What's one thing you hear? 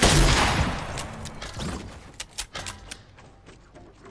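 Wooden panels clatter and snap into place in quick clicks.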